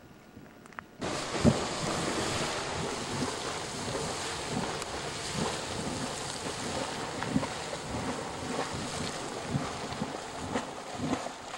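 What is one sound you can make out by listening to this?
A geyser erupts with a loud, steady hiss and splashing roar.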